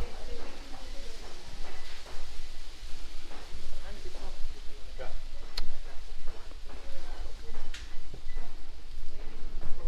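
Wind gusts outdoors, rustling palm leaves.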